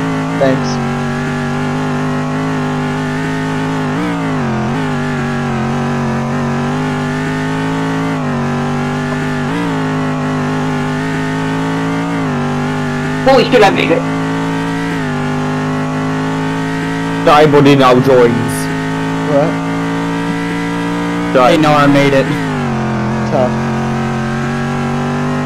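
A racing car engine drones steadily, its pitch dipping and rising as the gears shift.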